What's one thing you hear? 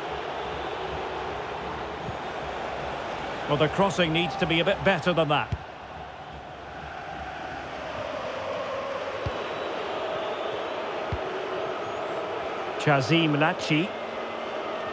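A large stadium crowd roars steadily in the background.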